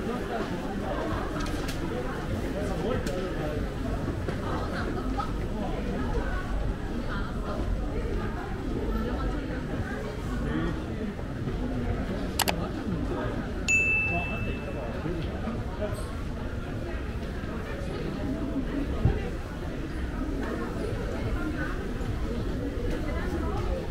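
A crowd murmurs and chatters in a busy echoing hall.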